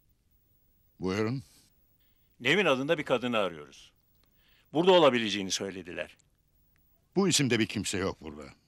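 A middle-aged man speaks firmly and loudly nearby.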